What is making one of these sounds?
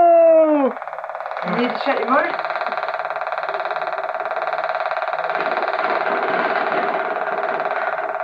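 A toy motorbike gives off a steady electronic buzzing hum.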